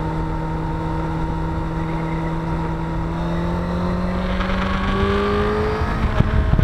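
An inline-four sport bike engine hums at cruising speed, its pitch rising slightly.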